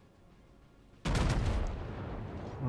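Naval guns fire in a loud, rumbling boom.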